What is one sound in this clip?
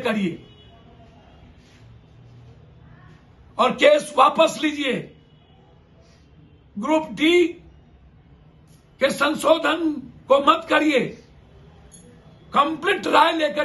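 A middle-aged man speaks emphatically into a nearby microphone, in short bursts with pauses.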